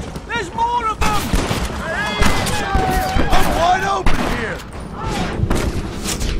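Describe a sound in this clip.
Gunshots crack out in rapid bursts.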